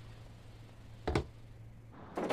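A box is set down on a wooden table with a knock.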